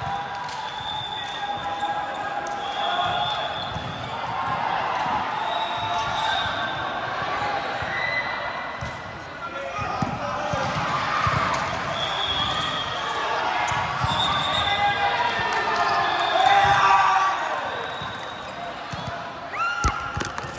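Young women shout and cheer in a large echoing hall.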